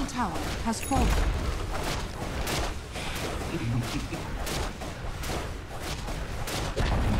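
Sharp combat hits clash repeatedly.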